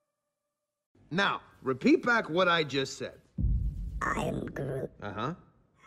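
A man speaks gruffly and with animation, close by.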